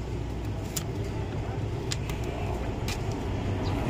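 Stiff paper crinkles as it is peeled off a sticker.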